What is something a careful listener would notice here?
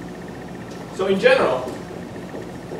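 A young man speaks briefly in an echoing hall.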